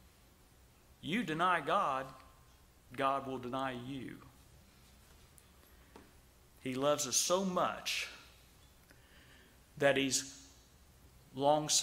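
A middle-aged man speaks with emphasis into a microphone, in short bursts with pauses.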